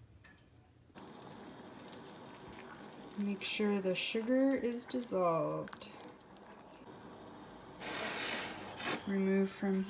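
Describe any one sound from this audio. Water bubbles and hisses as it boils in a pot.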